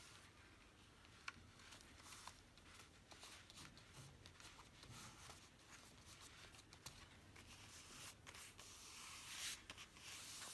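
Hands press and smooth paper with soft rubbing.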